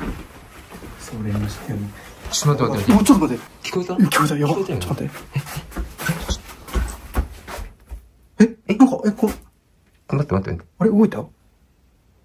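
A young man whispers nervously close by.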